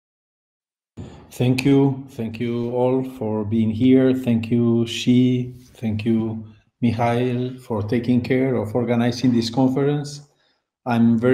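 A middle-aged man speaks calmly through a microphone, as on an online call.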